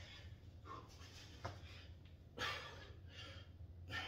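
Dumbbells knock against the floor.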